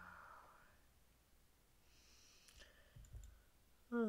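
A small button clicks.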